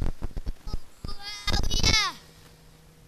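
A young woman sings a high, wavering melody through a microphone.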